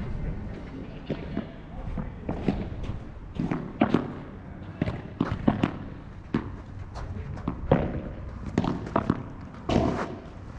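Padel rackets hit a ball back and forth with sharp pops.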